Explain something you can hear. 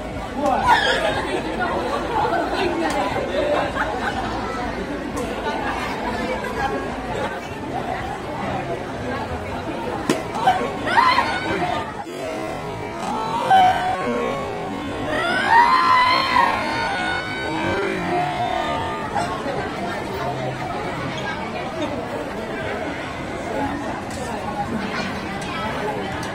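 A crowd chatters outdoors all around.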